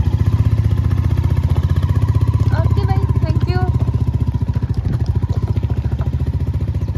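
A motorcycle engine thumps steadily up close.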